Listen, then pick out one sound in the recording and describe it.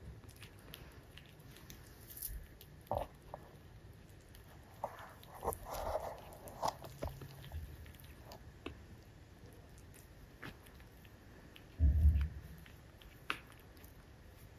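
A puppy sniffs and snuffles softly close by.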